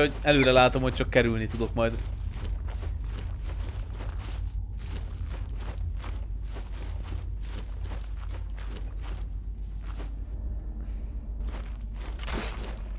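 Footsteps crunch quickly through grass and undergrowth.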